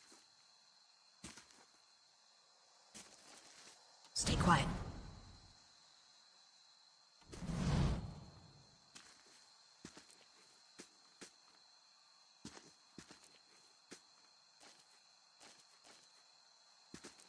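Footsteps fall softly on a dirt path.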